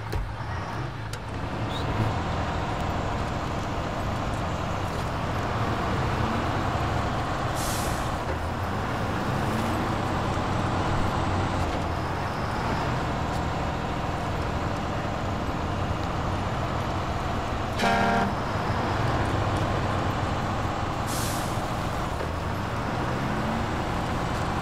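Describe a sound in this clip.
A truck engine rumbles steadily and revs under load.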